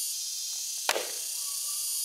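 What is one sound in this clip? A heavy wooden block thumps down onto a post.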